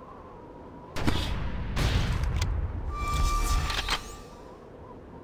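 A gun fires in a burst of loud bangs.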